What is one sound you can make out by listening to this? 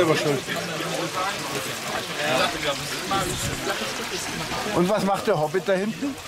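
Several men talk and chatter nearby.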